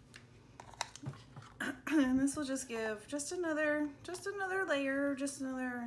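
A plastic lid clicks onto a small jar.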